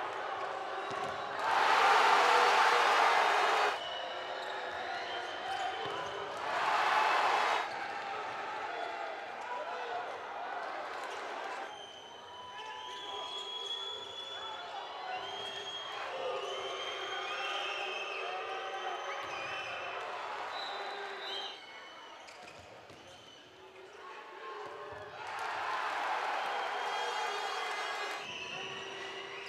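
Sports shoes squeak sharply on a hard court.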